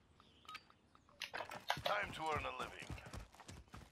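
Footsteps run over dirt.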